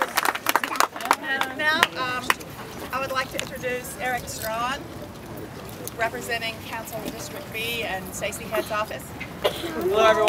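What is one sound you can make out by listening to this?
A woman speaks with animation to a small crowd outdoors.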